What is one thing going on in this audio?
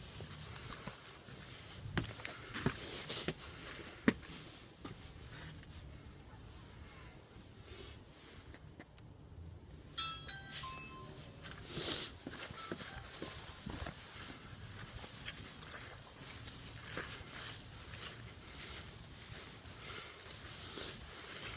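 A young man talks quietly, very close by.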